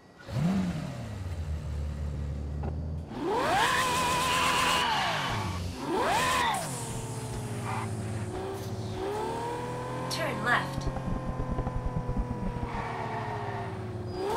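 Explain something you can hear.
A sports car engine revs hard and roars, rising and falling in pitch.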